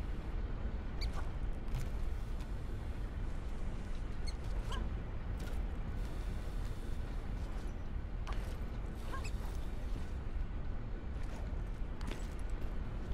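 Hands grab onto metal and stone with short scraping knocks.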